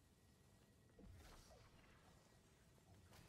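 A magic blast crackles and bursts.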